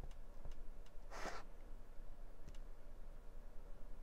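A stamp is pressed down onto paper with a soft thud.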